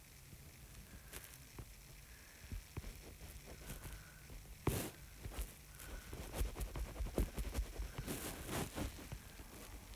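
Quick thuds of a sword hitting creatures come one after another.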